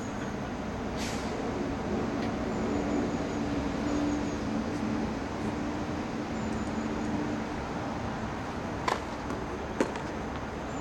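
A tennis racket strikes a ball with sharp pops outdoors.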